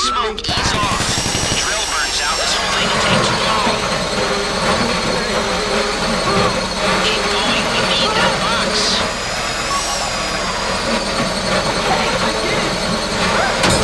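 A power drill whines steadily as it bores into metal.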